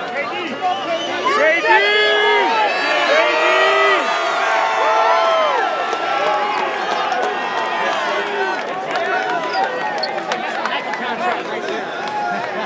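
A crowd of fans cheers and shouts excitedly nearby, with high-pitched screams.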